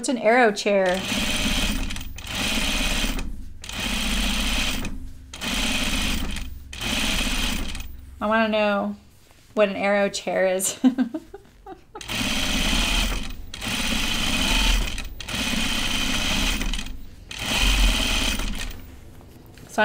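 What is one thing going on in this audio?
A sewing machine runs in short bursts of stitching.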